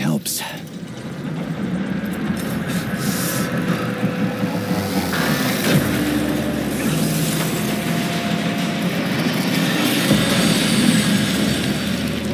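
Water rushes and sprays loudly nearby.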